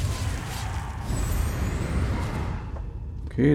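A magic spell crackles and bursts with a loud whoosh.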